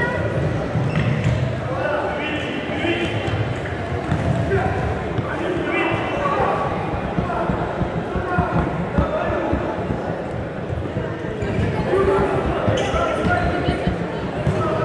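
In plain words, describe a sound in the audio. A ball thuds on a hard floor as players kick it.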